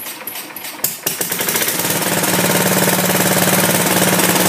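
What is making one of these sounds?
A small lawn tractor engine starts up and runs with a steady, loud rattle.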